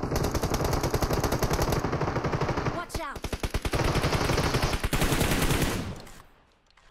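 Rapid gunshots ring out loudly.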